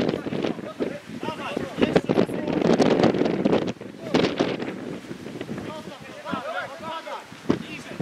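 Young male footballers shout to each other across an open pitch.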